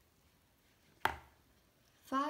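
A page of a thick board book is turned over with a soft thud.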